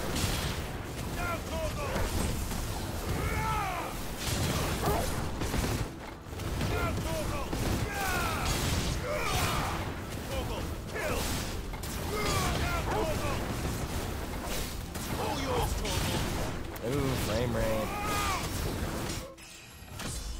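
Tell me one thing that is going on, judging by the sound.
Swords clash and slash in quick, fiery bursts.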